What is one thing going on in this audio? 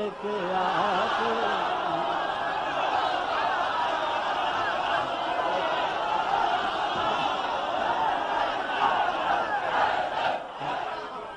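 A large crowd of men chants loudly together.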